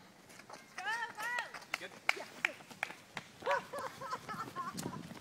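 Young men shout and whoop excitedly outdoors.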